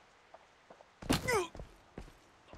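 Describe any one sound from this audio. A heavy body slams onto the ground with a loud thud.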